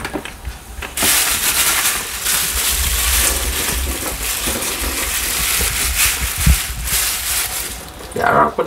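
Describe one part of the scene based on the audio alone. A plastic bag rustles and crinkles in hands.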